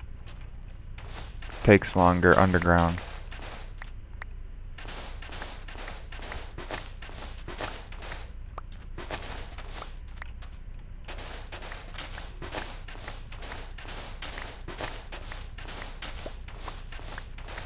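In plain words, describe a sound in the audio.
A shovel crunches rapidly into sand, block after block.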